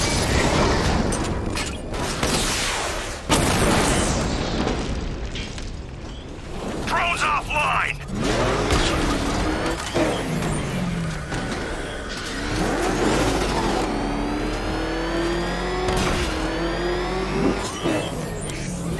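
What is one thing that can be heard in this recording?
An armoured car's engine roars and revs as it speeds along.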